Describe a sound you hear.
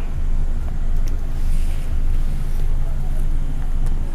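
A paper book rustles softly as it is slid across a surface.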